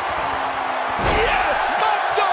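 A body slams hard onto a wrestling mat with a heavy thud.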